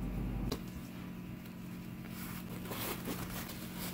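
A paper towel rustles as it is handled.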